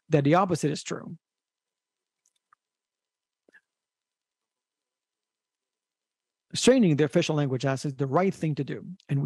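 A young man speaks calmly into a microphone, pausing between phrases.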